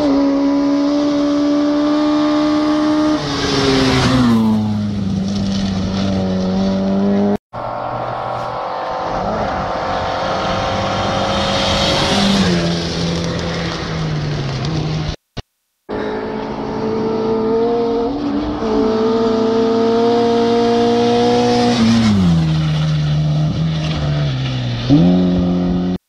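A rally car engine roars loudly at high revs as it races past and drops in pitch.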